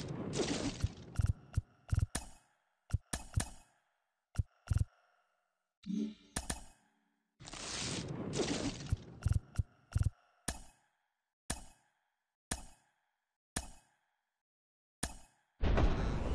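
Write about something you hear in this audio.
Short sharp swishes and snaps sound as cards flip over one by one.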